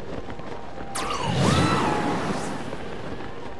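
A loud whoosh of swirling wind bursts and then fades.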